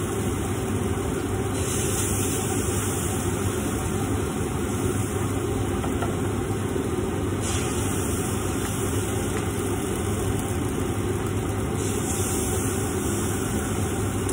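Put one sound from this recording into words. Batter sizzles steadily in hot pans.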